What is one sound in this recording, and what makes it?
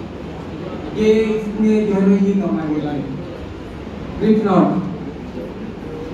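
A man speaks through a microphone over loudspeakers in an echoing hall.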